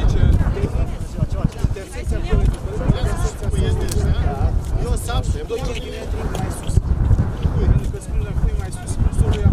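Several men and women chat.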